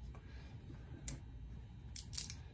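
Dice rattle and clatter in a wooden tray.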